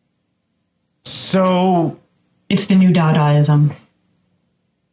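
A man speaks with animation into a microphone, heard up close.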